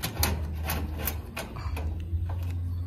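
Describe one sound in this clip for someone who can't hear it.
Light metal taps and clicks sound close by as a metal rail is fitted onto a metal roof.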